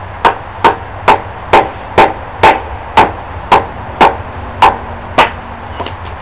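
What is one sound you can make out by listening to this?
A tool knocks against a wooden log in steady, quick blows.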